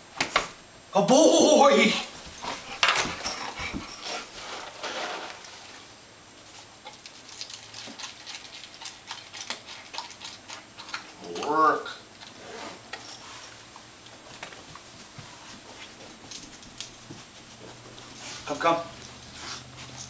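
A dog whines and yelps.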